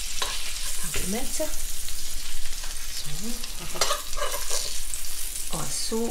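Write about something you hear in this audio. A spatula scrapes against a metal pan.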